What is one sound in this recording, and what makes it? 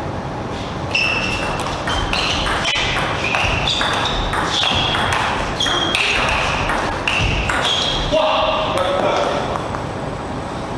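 Players' shoes squeak on the floor.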